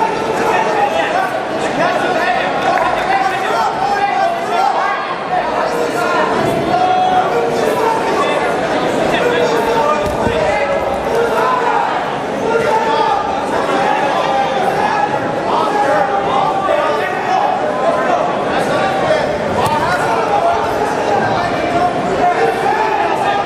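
Spectators and coaches shout instructions loudly.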